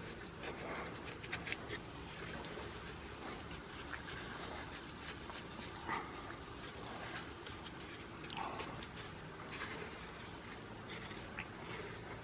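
Gloved hands rub and scrape wet mortar against a pot.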